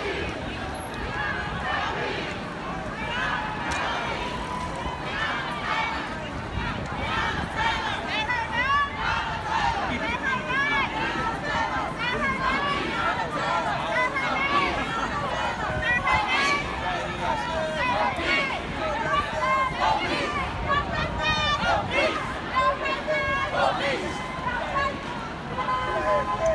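A large crowd of men and women chants and shouts outdoors.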